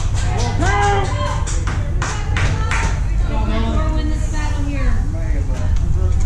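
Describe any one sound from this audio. Men shout and cheer from the field.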